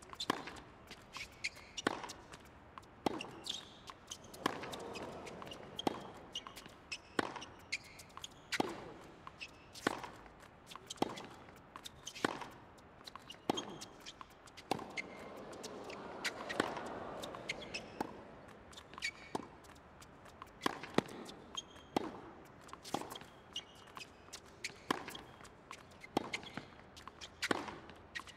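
Shoes squeak and scuff on a hard court.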